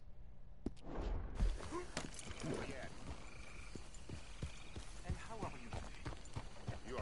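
A horse's hooves thud at a gallop.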